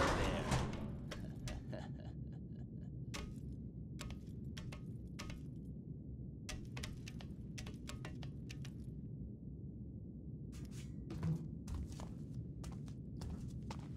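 Soft knocks and thuds sound as a person climbs on metal.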